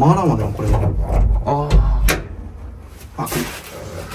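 A door handle rattles and clicks.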